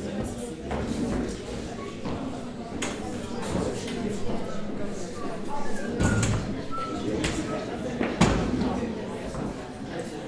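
Footsteps thud on a wooden stage in an echoing hall.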